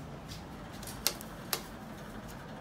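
A finger clicks an elevator button.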